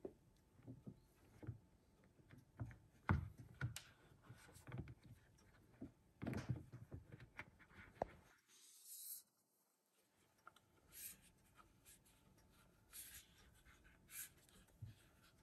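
Fingers tap and knock lightly on a phone.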